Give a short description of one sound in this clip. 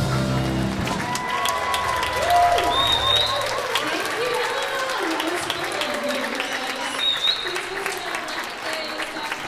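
A young woman sings into a microphone in a large hall.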